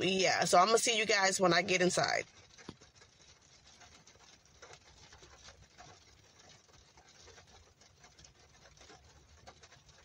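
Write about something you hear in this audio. Rain patters steadily on a car's roof and windows.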